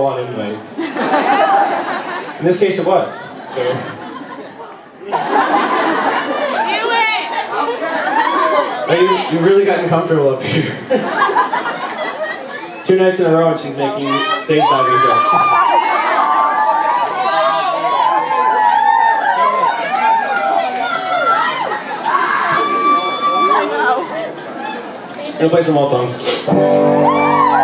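A man talks casually through a microphone on a stage.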